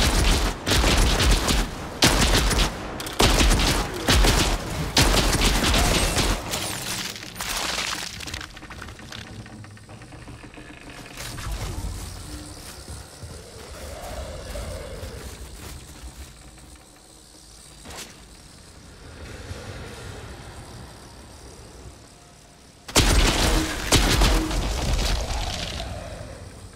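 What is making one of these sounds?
Loud rifle shots fire in quick bursts, with a booming echo.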